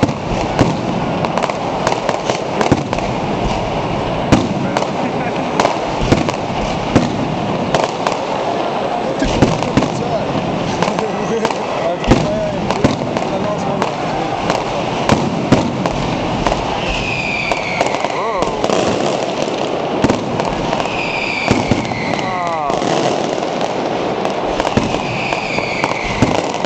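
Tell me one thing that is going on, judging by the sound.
Firecrackers bang and crackle rapidly.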